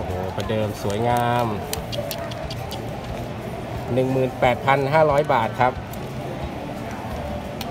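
Plastic film crinkles as it is handled.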